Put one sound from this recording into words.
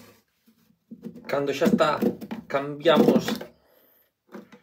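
A sharpening plate clatters into a plastic case.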